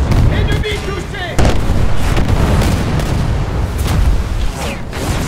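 A ship explodes with a loud, rumbling roar.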